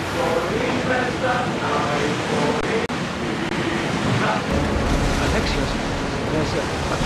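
Waves splash against a wooden ship's hull as it sails.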